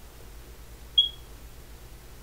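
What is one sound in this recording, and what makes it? A short, bright electronic chime sounds once.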